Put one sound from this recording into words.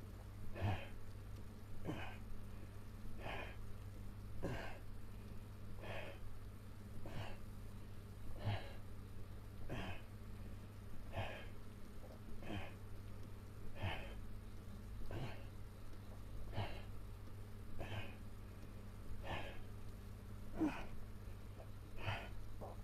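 A young man exhales sharply and rhythmically with each effort, close by.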